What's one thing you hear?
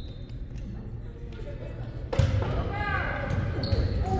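A volleyball is struck by hand.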